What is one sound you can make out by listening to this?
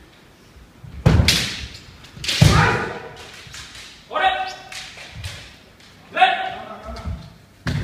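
Young men shout fierce, drawn-out battle cries that echo in a large hall.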